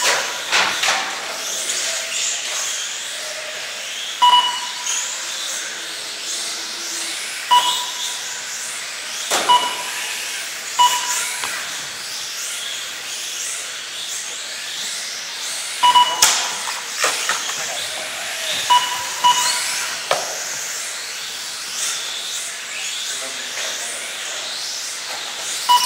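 Small electric racing cars whine as they speed around and slowly rise and fall in pitch, echoing in a large hall.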